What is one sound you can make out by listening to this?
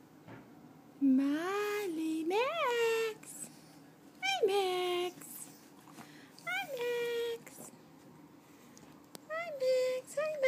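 A small puppy whines and yelps in high, rising cries.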